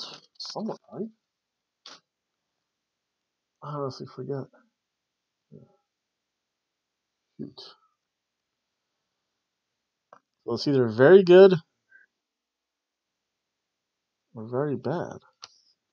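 A middle-aged man talks in short bursts, close to a microphone, with pauses between phrases.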